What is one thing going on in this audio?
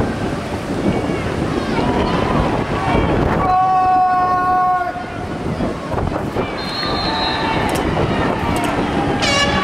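A crowd of spectators cheers and shouts in an open-air stadium.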